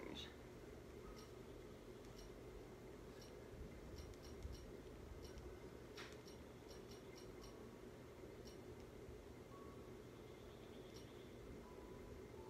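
Menu sounds from a video game beep and click softly through a television speaker.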